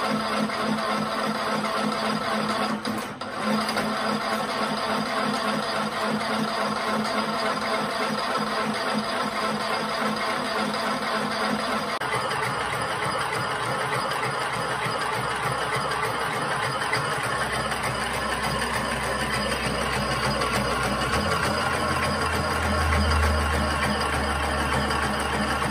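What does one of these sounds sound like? A small machine runs with a steady whirring hum.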